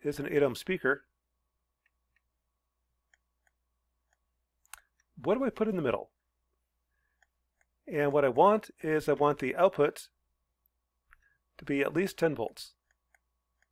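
A man speaks calmly into a close microphone, explaining in short phrases with pauses.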